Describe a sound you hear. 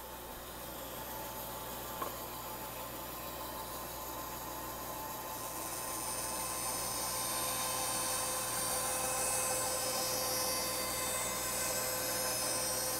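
A band saw runs with a steady hum and whine.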